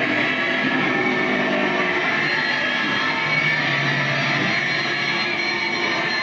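A young woman sings loudly into a microphone through a loudspeaker.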